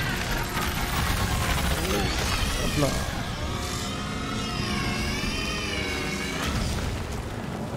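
A monster roars and shrieks with a warbling cry.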